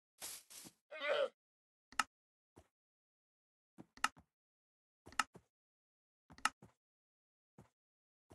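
Soft clicks tap now and then.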